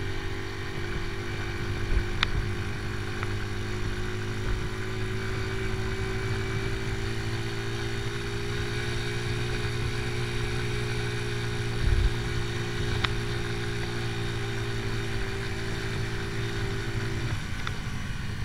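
A motorcycle engine hums steadily as the bike rides along.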